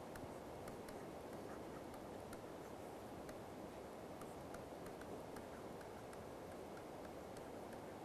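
A pen taps and scratches on a writing tablet.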